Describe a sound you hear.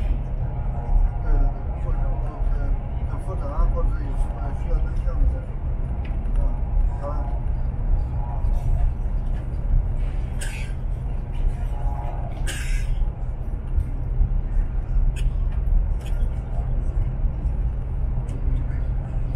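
A train rumbles steadily at speed, heard from inside a carriage.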